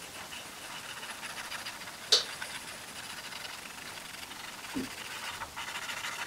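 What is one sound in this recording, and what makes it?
A cotton swab rubs softly over a hard surface.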